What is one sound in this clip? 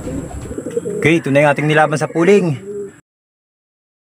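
A pigeon coos close by.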